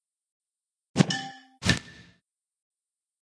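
A short swoosh and click sound as game pieces swap.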